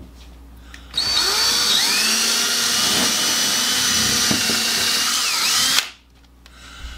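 A cordless drill whirs steadily.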